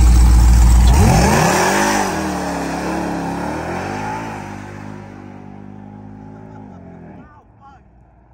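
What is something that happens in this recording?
A truck engine roars as it accelerates away and fades into the distance.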